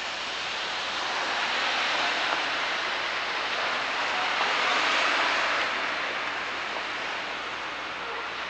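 A car drives past on the street nearby.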